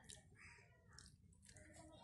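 Water pours from a plastic bottle onto wet cloth.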